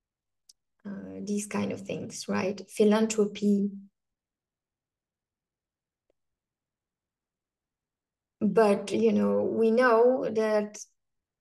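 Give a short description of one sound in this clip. A young woman speaks calmly through an online call, pausing between phrases.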